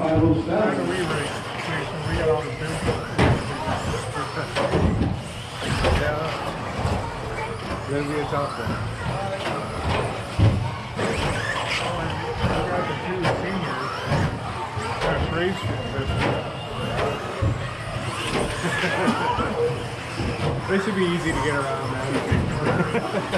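Electric radio-controlled stadium trucks whine as they race around a carpet track in a large echoing hall.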